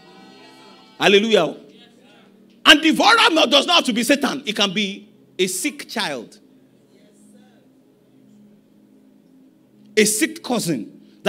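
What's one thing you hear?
A man preaches with animation into a microphone in a large echoing hall.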